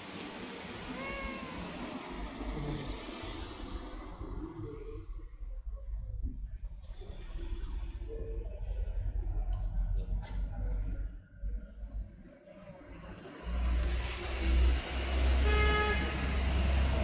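A cat meows softly.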